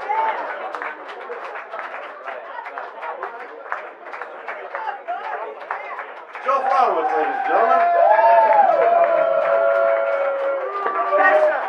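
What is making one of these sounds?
A crowd of people chatter loudly nearby.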